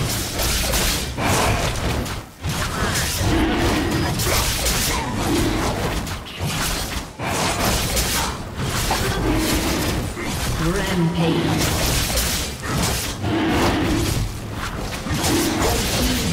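Magic blasts and blows crash and whoosh in a fight with a large beast.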